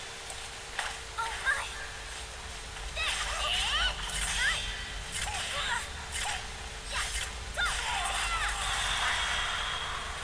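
Blades swing and strike with sharp, ringing hits.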